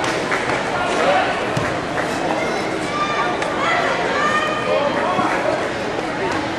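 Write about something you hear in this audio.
A large crowd chatters and shouts, echoing through a big hall.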